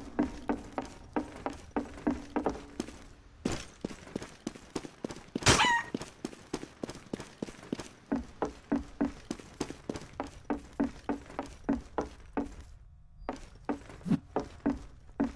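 Quick, steady footsteps thud on hard floors.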